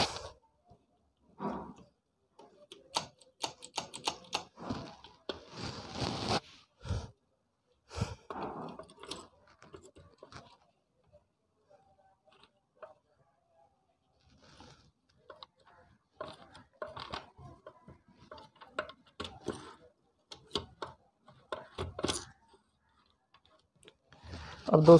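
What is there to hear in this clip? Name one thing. Metal engine parts clink and click as they are handled and fitted together.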